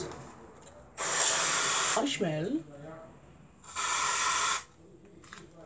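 An aerosol can sprays in short hissing bursts.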